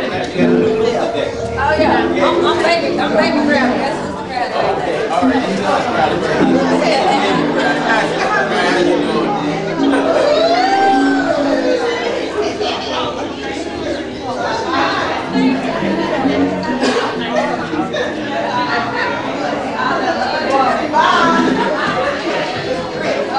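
A congregation of men and women sings together in an echoing hall.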